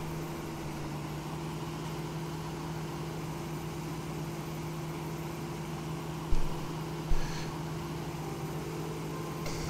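A combine harvester's engine drones steadily.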